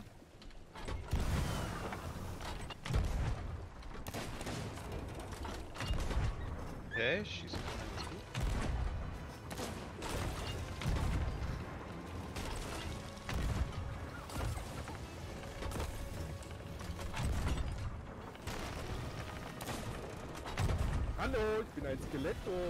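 A ship's cannon fires again and again with deep booms.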